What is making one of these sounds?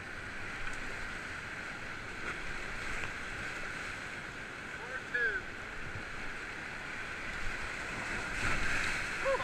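Whitewater rapids roar loudly and steadily.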